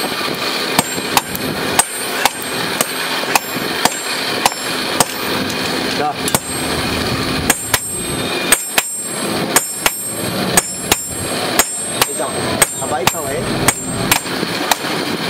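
A hammer strikes hot metal on an anvil with sharp, ringing clangs in a steady rhythm.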